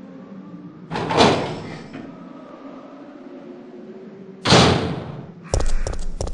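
A heavy metal door opens with a loud rushing clank.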